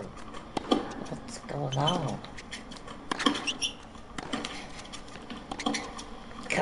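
A tennis ball is struck sharply by a racket, back and forth in a rally.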